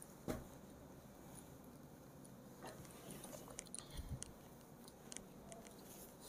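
Stiff woven fabric rustles and crinkles as hands fold it.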